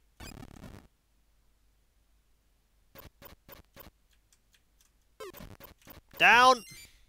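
Short electronic game sounds beep and chirp.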